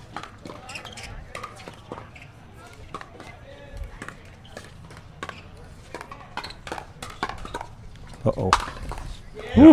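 Paddles pop sharply against a plastic ball in a quick rally outdoors.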